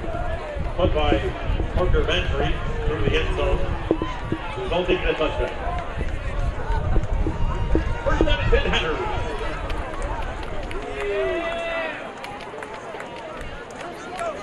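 A crowd in the stands cheers and shouts outdoors.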